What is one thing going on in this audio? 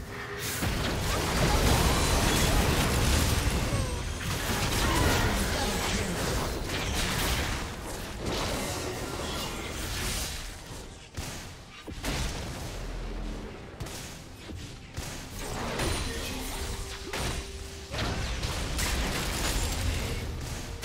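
Fantasy battle effects crackle, whoosh and clash rapidly.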